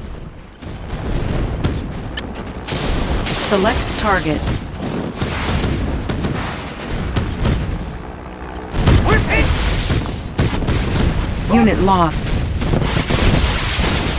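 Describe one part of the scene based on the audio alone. Missiles whoosh down through the air.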